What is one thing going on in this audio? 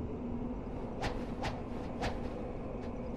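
A blade swooshes sharply through the air several times.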